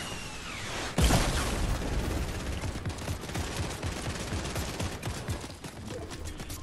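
Walls crash and shatter with a loud burst of debris.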